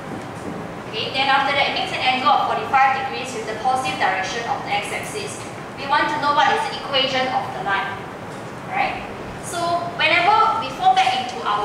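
A woman speaks clearly and steadily.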